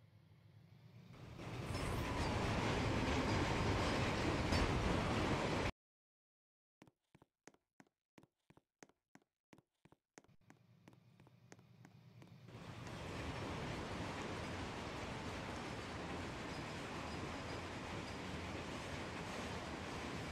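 A train rumbles past on the tracks.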